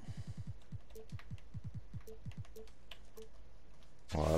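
Soft electronic menu clicks tick one after another.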